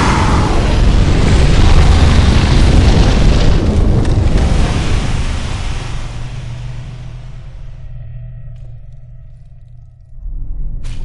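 A fire roars in a loud burst of flame and slowly dies down.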